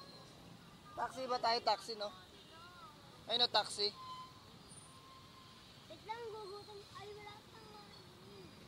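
A young child talks loudly close by.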